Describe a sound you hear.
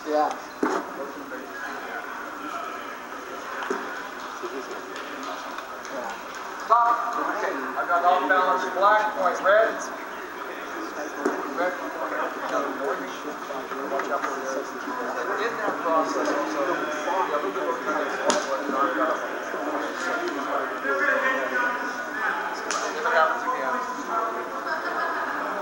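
Several men talk among themselves in a large echoing hall.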